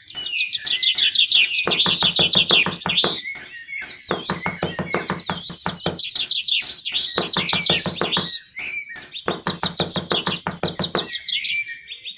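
A small trowel scrapes across loose sand.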